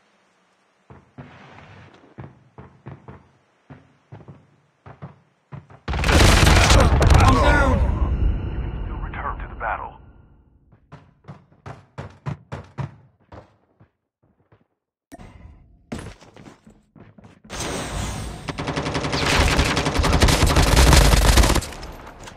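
Footsteps thud on a hard floor in a game.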